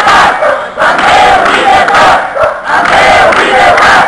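Women clap their hands.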